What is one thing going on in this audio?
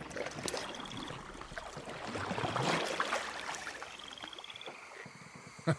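A pole splashes softly in water as a boat is pushed along.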